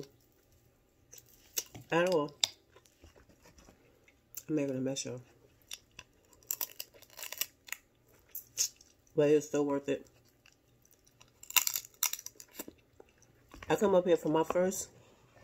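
Crab shells crack and snap.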